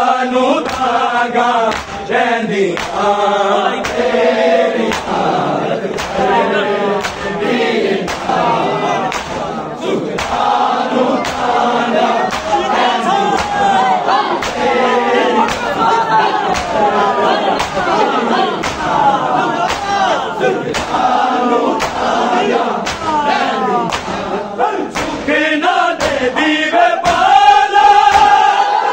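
A man leads a chant loudly through a microphone.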